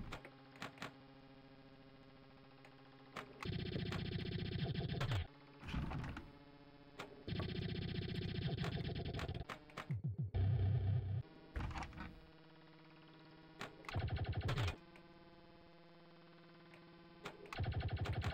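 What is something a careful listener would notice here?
A pinball knocks against bumpers with sharp clicks.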